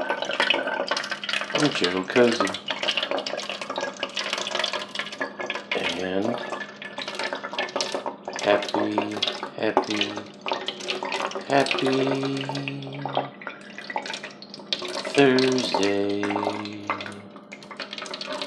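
Water trickles from a bottle into a can.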